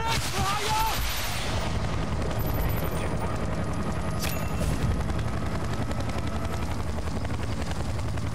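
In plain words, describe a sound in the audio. Explosions boom in the distance.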